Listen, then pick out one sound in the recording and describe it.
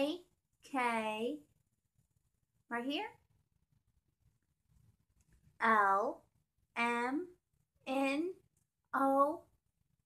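A young woman speaks single words slowly and clearly, close by, with pauses between them.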